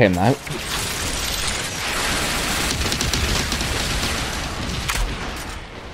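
A machine gun fires a long, rapid burst.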